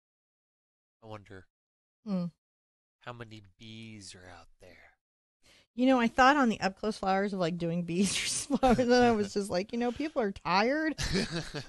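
A woman talks calmly and closely into a microphone.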